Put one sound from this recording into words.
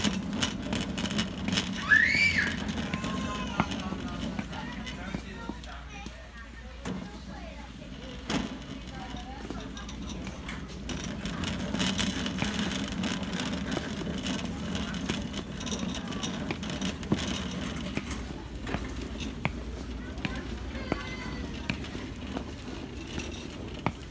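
Work boots clomp on a hard floor.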